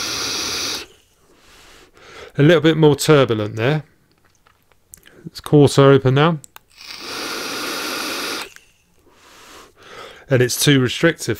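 A man exhales a long breath.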